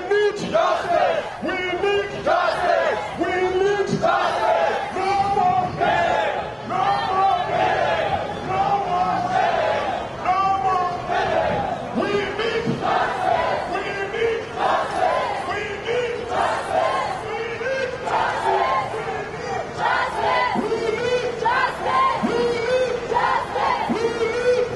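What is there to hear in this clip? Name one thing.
A large crowd chants loudly outdoors.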